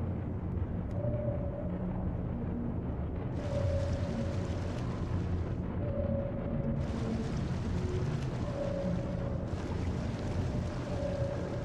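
A submarine's active sonar pings at regular intervals.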